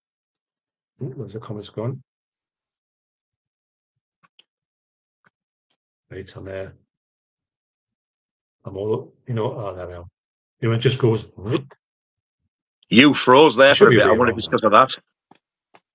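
A second man talks calmly over an online call.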